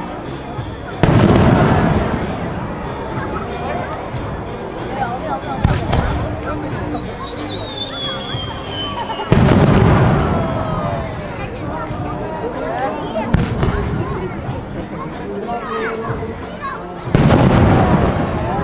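Fireworks burst with loud, deep booms.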